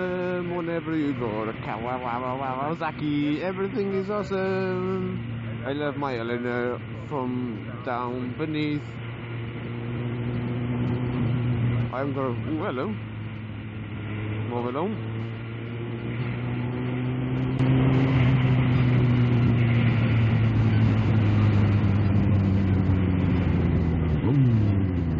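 A heavy vehicle's engine drones steadily as it drives along a road.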